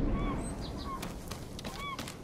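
Footsteps run quickly over grass and stone.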